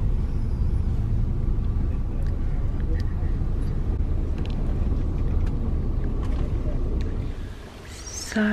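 A car engine and road noise rumble steadily from inside a moving car.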